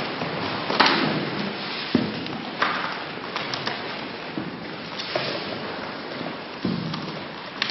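Papers rustle as a man flips through a folder.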